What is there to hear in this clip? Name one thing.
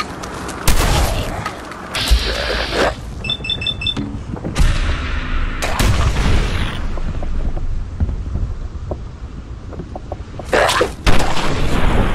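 A shotgun fires with loud blasts.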